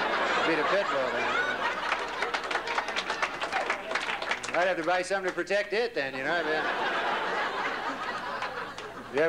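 A young man speaks through a microphone to an audience.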